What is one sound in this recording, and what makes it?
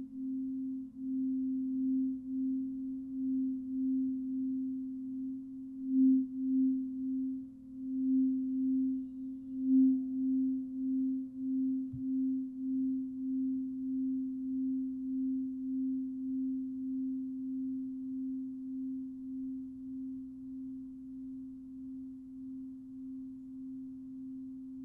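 A crystal singing bowl hums with a steady, pulsing low ring that slowly fades.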